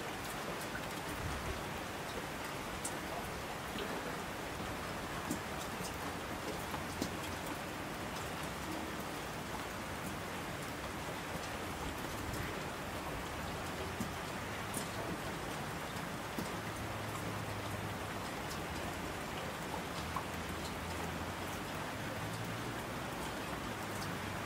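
Streams rush and roar down the slopes.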